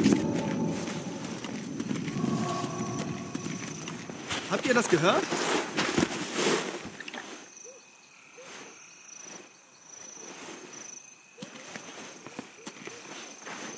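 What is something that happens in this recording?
Footsteps crunch softly through snow.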